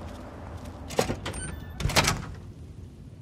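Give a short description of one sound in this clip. A heavy metal door opens with a loud clank.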